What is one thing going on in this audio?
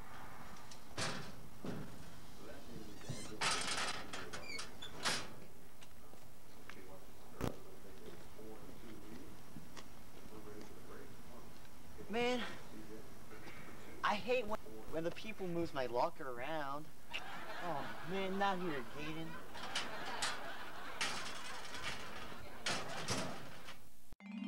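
A metal locker door rattles and bangs.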